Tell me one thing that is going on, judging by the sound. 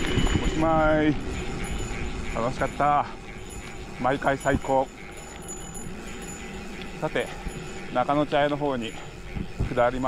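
Bicycle tyres hum softly on a smooth paved road.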